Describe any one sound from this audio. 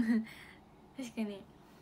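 A young woman laughs softly close to a phone microphone.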